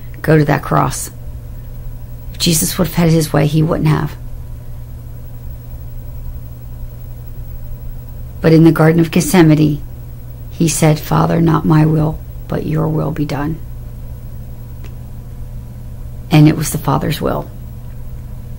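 A middle-aged woman talks calmly close to the microphone, in short bursts with pauses.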